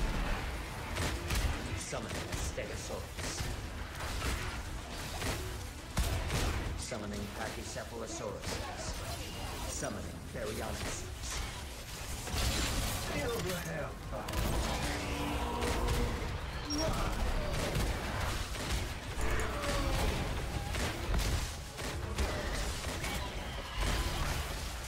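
A man talks with animation through a microphone, close by.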